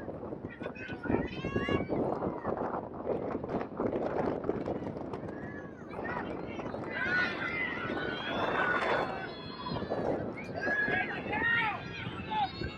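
Young women shout and call out to each other outdoors.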